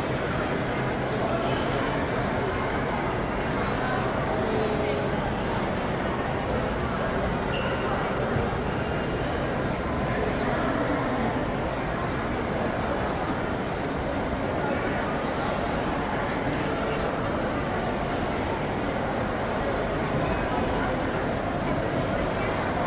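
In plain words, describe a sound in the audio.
A crowd murmurs steadily in a large, echoing indoor space.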